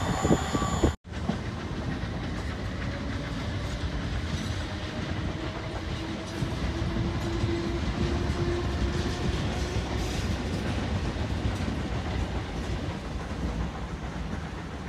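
A distant train rumbles softly as it approaches.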